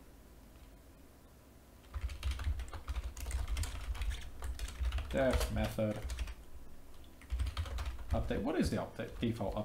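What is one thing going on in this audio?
Computer keys click as a man types.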